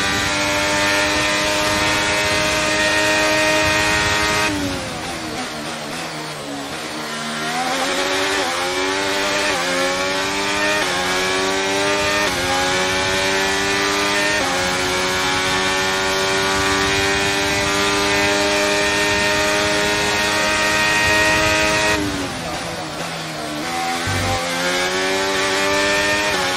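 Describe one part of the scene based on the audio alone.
A racing car engine screams at high revs, drops in pitch while braking, then climbs again through the gears.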